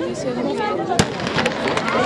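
A starting pistol fires once with a sharp crack.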